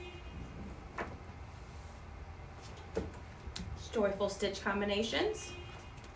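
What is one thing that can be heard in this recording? A book closes with a soft thud.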